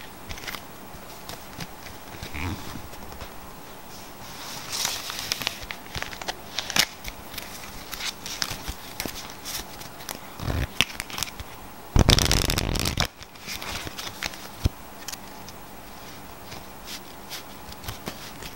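Playing cards riffle, snap and click as they are shuffled and handled.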